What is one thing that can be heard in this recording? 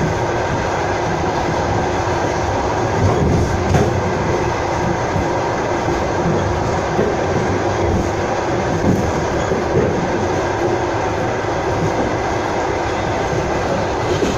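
A passing freight train roars by close alongside.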